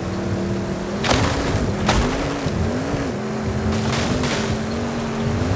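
Bushes scrape and swish against a car as it plows through.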